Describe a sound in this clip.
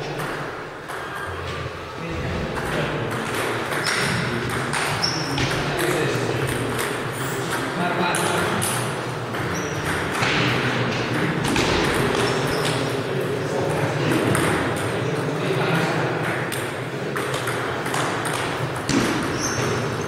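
Table tennis balls tap rapidly back and forth across a table in an echoing hall.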